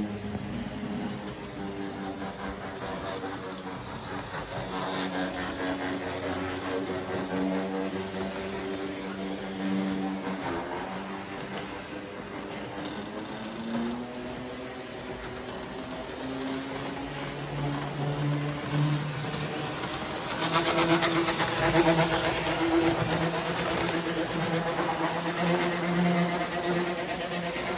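A model train rumbles and clatters along metal tracks.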